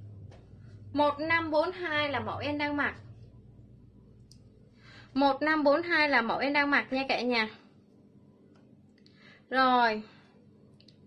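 A young woman speaks close to the microphone in a lively, sing-song way.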